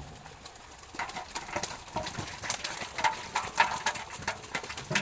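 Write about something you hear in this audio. Wet fish slap and clatter into a metal pot as a basket is tipped out.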